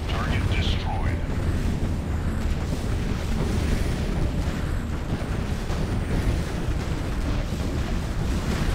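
Explosions boom with a deep rumble.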